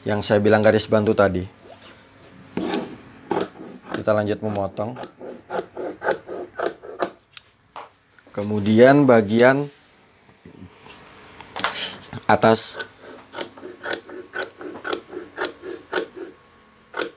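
Scissors snip and crunch through fabric in quick, repeated cuts.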